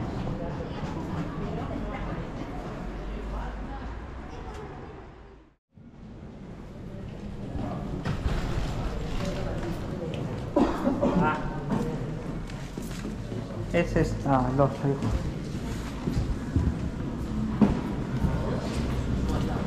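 People murmur quietly in a large echoing hall.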